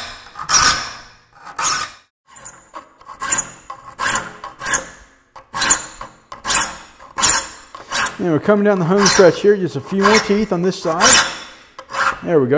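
A metal file rasps in short strokes across saw teeth.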